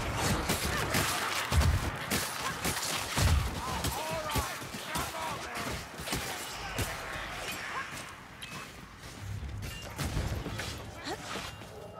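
A sword slashes and strikes creatures with sharp hits.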